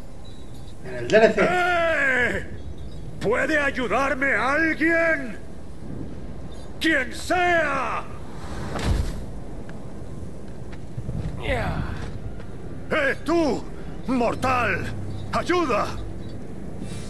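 An elderly man speaks slowly and gravely.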